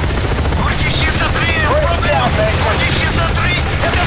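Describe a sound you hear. Machine-gun fire rattles in bursts.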